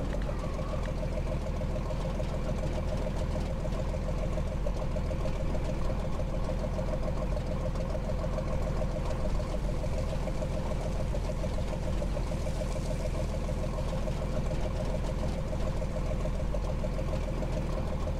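A tank engine rumbles steadily at idle.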